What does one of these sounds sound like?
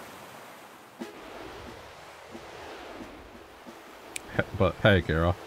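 Steam hisses from vents in the ground.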